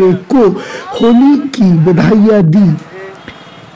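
Young people shout and cheer loudly close by.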